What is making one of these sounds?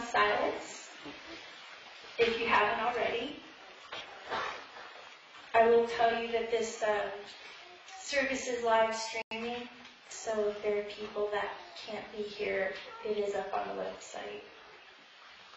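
A woman speaks slowly through a microphone in a hall.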